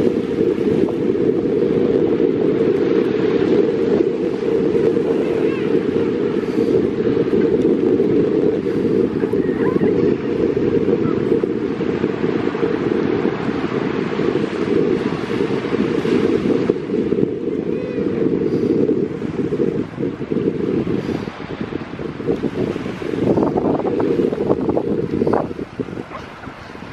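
Strong wind blows across the microphone outdoors.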